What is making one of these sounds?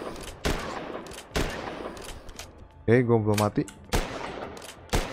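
Gunshots fire in quick, sharp bursts with a ringing echo.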